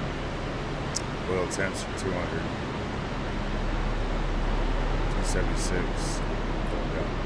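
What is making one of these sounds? A man speaks briefly through a headset microphone.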